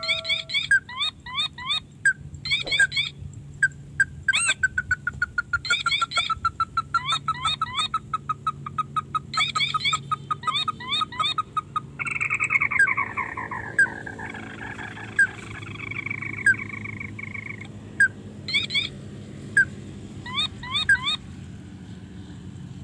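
Water trickles gently along a ditch.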